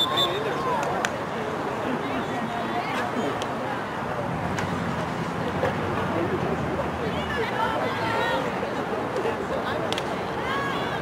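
Hockey sticks sharply strike a ball.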